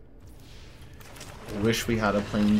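A magical swirling whoosh rises as a spell is cast.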